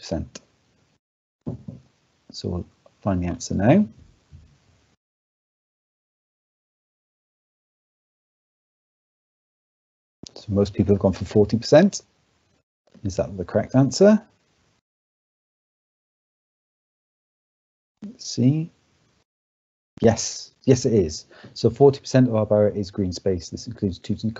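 A man speaks calmly through an online call microphone, pausing between phrases.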